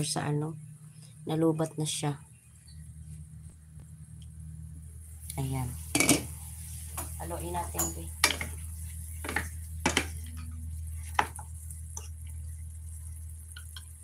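Food sizzles gently in a frying pan.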